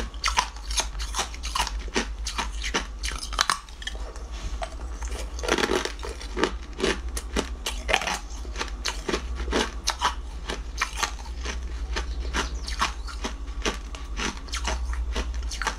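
A young woman chews wetly with smacking sounds close to a microphone.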